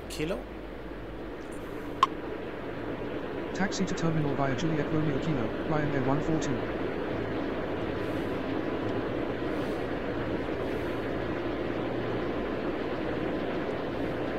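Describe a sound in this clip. A jet airliner's engines whine and rumble steadily as it taxis.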